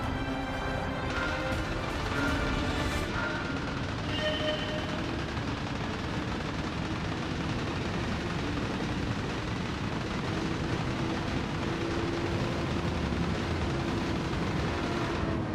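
A racing car engine roars loudly as it accelerates hard.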